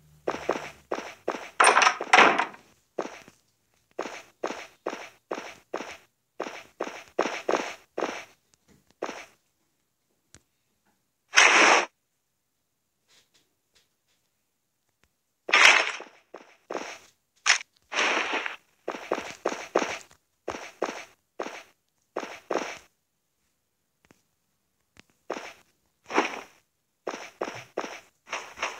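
Footsteps thud at a steady walking pace.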